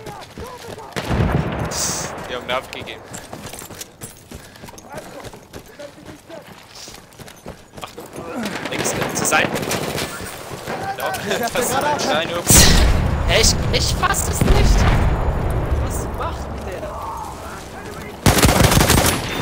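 Explosions boom close by.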